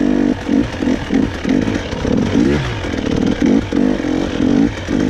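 Tyres crunch over a rough dirt trail.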